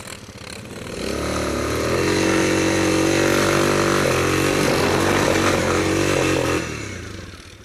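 A single-cylinder ATV engine roars at full throttle through deep snow.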